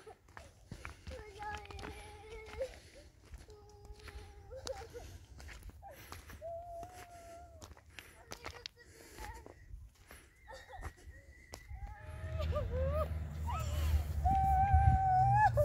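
A small child's footsteps crunch on loose stones.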